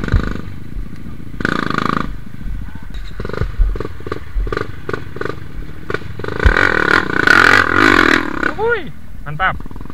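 A dirt bike's tyres churn and splash through mud.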